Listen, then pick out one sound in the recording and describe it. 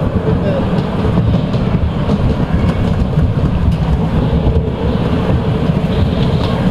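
A bumper car rumbles and hums as it drives.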